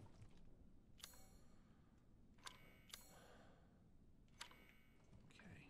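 Short electronic beeps chime.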